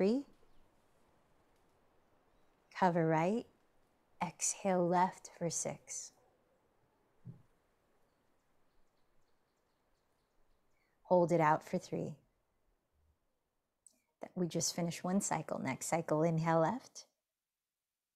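A young woman speaks calmly and softly into a nearby microphone.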